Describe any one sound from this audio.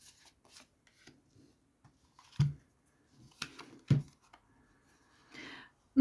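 Cards are set down on a table with soft taps.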